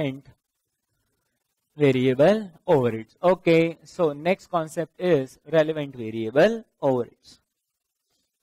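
A man speaks calmly, like a lecturer, close to a microphone.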